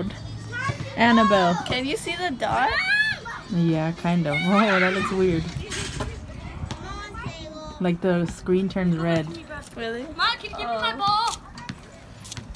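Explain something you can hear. A girl talks and laughs close by.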